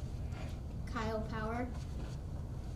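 A boy speaks briefly into a microphone.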